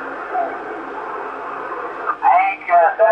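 Radio static hisses steadily through a loudspeaker.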